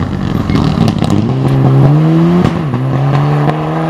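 Gravel sprays and crunches under the tyres of a rally car.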